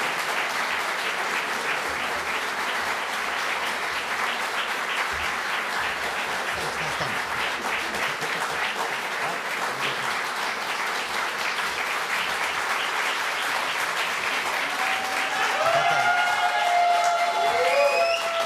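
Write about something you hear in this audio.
A large crowd claps and cheers loudly in a big hall.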